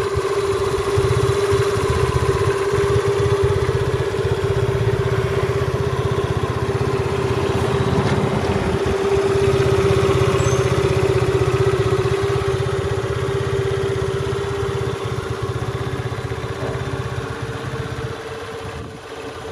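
A scooter engine idles steadily close by.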